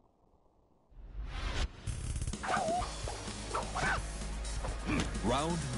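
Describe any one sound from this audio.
Dramatic fighting game music and effects play loudly.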